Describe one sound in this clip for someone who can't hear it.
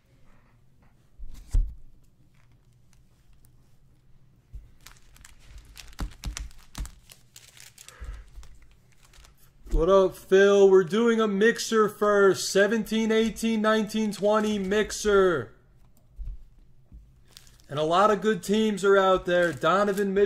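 Plastic card wrappers crinkle as hands shuffle them.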